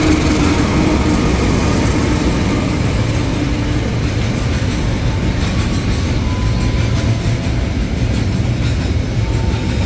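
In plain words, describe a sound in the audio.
Container freight wagons clatter over rail joints.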